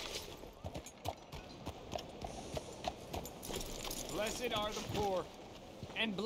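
A horse's hooves clop on a street.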